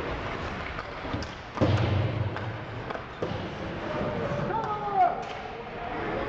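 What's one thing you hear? Ice skates scrape and glide on the ice.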